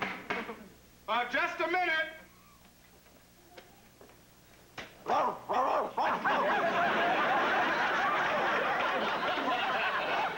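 A man shouts with animation, close by.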